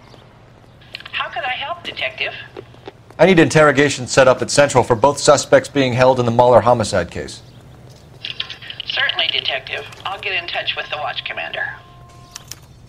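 A man's voice answers through a telephone, sounding thin and distant.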